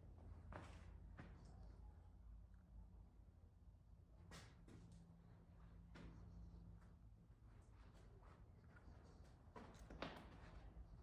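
Footsteps crunch on sandy, gritty ground.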